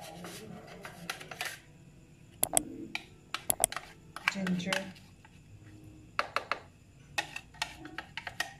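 A plastic spoon taps and scrapes against a small plastic tub.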